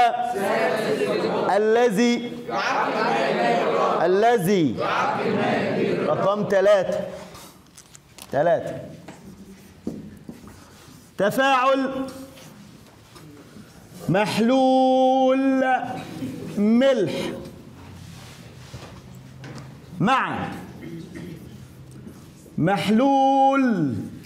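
A man speaks with animation, close to the microphone.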